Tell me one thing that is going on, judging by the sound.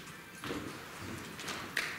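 A woman's heels click on a wooden stage floor.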